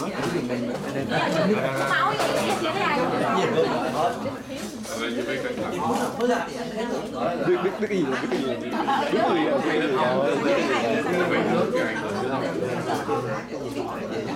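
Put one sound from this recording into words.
A middle-aged man talks quietly up close.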